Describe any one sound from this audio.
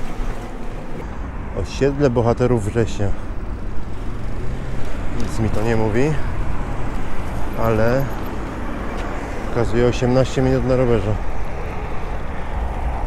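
Wind buffets the microphone outdoors while cycling.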